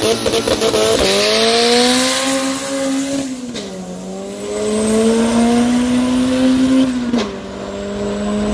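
A car engine roars at full throttle, climbing through the gears as the car speeds away.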